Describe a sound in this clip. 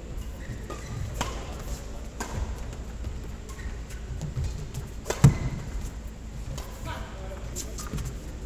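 Sports shoes squeak on an indoor court floor.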